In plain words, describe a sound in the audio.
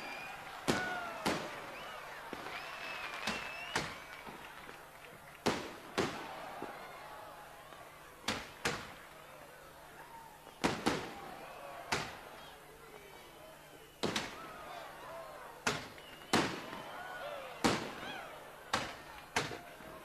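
Fireworks rockets whistle as they shoot upward.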